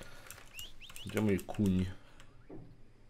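A man speaks briefly into a microphone, close by.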